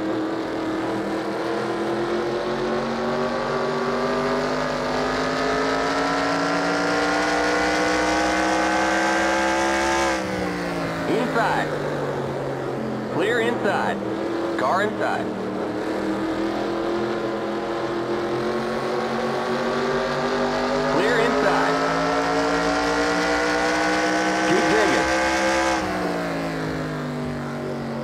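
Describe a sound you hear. A race car engine roars steadily, rising in pitch as it speeds up and dropping as it slows for the turns.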